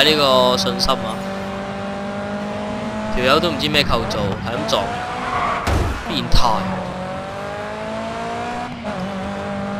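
A racing car engine roars and revs as gears shift.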